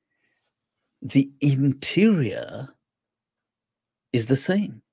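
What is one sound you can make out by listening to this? A man speaks emphatically into a close microphone.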